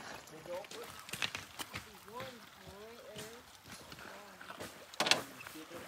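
A shallow river flows and ripples over stones.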